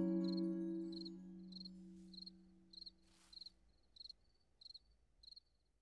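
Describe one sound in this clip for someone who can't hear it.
Soft, quick footsteps patter at an even pace.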